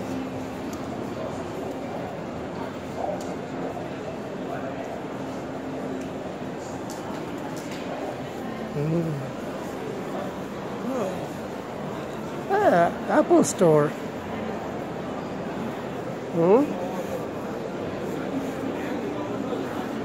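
A crowd murmurs in a large, echoing hall.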